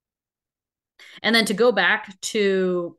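A young woman speaks through an online call.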